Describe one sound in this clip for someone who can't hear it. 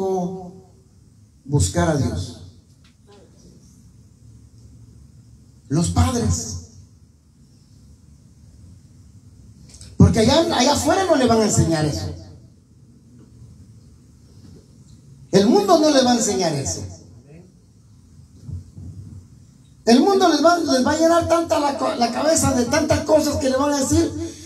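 An elderly man sings into a microphone over loudspeakers in a room that echoes.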